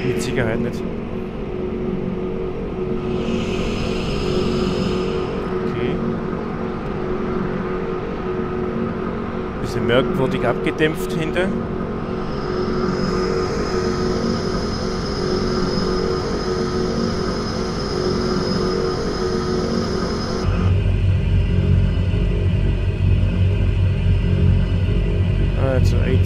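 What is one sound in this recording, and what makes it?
Twin propeller engines idle with a steady, droning hum.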